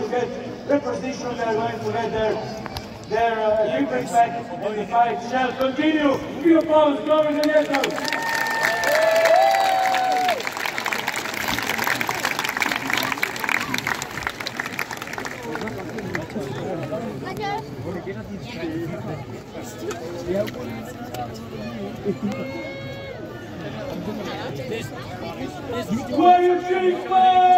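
A crowd of spectators chatters outdoors close by.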